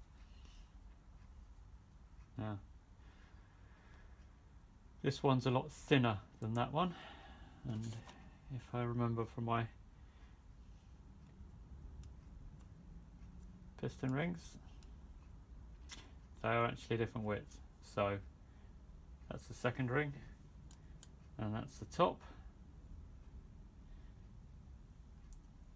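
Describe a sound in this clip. Small metal rings clink softly as they are handled.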